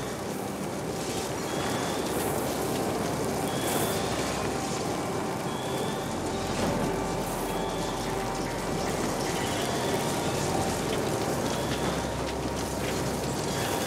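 Fires roar and crackle with showers of sparks.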